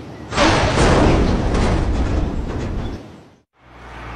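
A large heavy panel slams down onto the ground.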